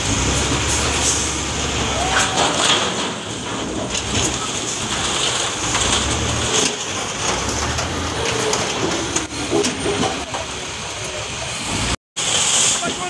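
A heavy loader's diesel engine rumbles and roars.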